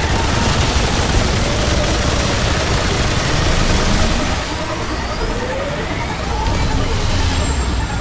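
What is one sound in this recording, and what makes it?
Energy blasts whoosh and boom.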